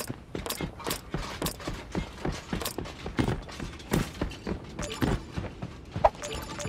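Building pieces snap into place with sharp clicks.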